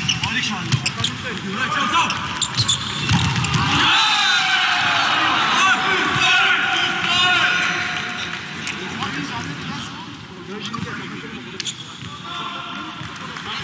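A volleyball is struck hard during a rally.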